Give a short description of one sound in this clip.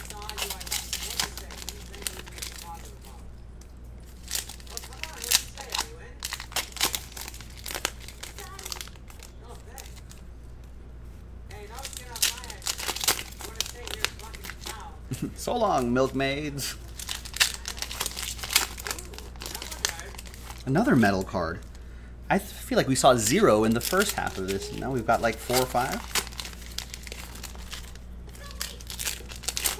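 Foil card packs crinkle and tear in someone's hands.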